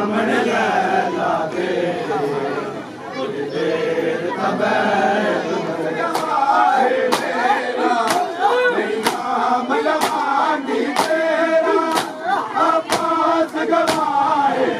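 A crowd of men chants loudly and rhythmically outdoors.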